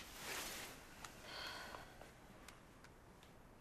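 A metal pot clinks lightly.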